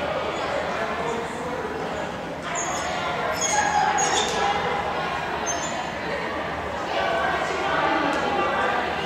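Young women on a team chatter and call out together in a large echoing gym.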